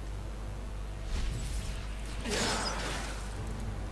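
A magical spell whooshes and crackles in bursts.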